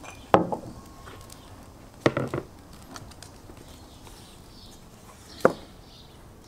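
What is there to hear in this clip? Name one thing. A knife knocks on a wooden board.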